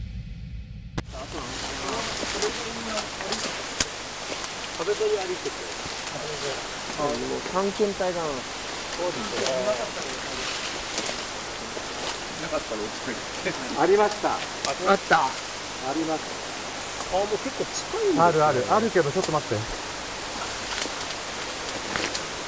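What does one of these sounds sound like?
Leaves and branches rustle as people push through thick bushes.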